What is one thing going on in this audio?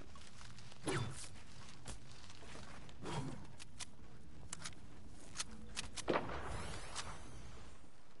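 Wooden building pieces clack and thud into place.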